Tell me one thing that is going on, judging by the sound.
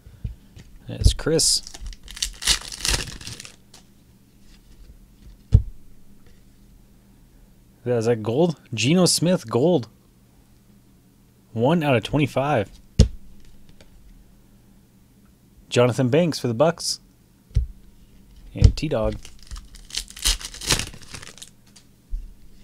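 A foil wrapper crinkles and tears as a card pack is opened.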